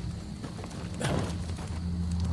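A blade swishes and strikes a creature.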